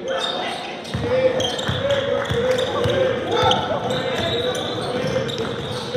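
A basketball bounces on a wooden floor in quick, steady beats.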